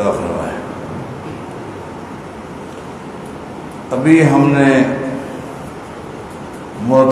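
A middle-aged man speaks slowly and calmly into a microphone in an echoing room.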